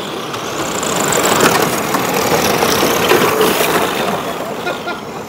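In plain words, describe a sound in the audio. Tyres skid and spray loose dirt.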